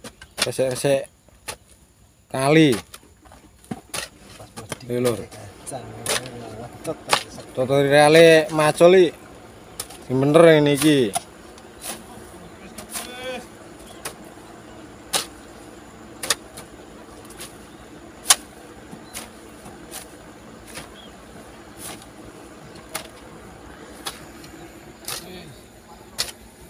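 A hoe chops into soil with dull thuds.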